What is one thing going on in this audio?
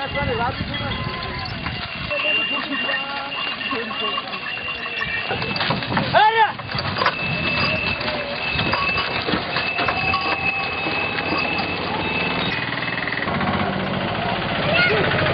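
Wooden cart wheels rumble and creak along a road.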